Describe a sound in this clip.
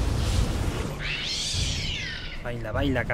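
A creature shrieks as it burns.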